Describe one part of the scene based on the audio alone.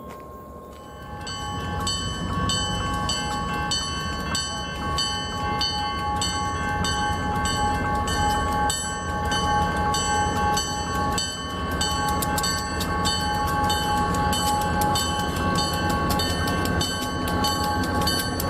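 A railway crossing bell rings rapidly and steadily.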